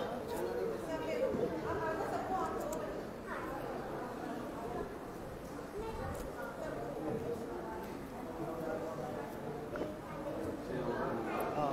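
A man speaks calmly into a microphone through a loudspeaker in an echoing hall.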